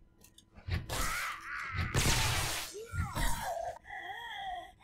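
A club thuds against a body.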